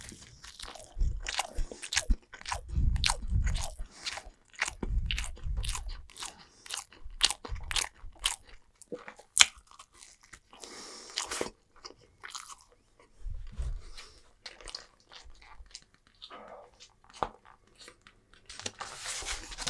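A young man chews and slurps food noisily close to a microphone.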